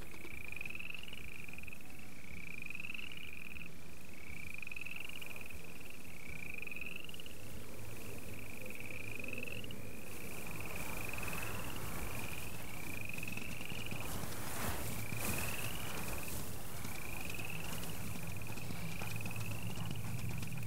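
An animal's paws rustle through tall grass as it runs.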